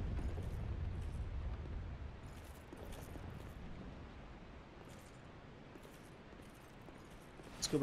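Armoured footsteps clank softly on stone.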